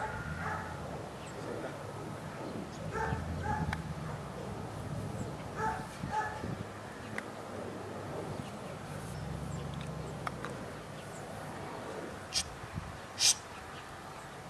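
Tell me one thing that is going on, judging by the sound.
Wind blows and rumbles across open ground.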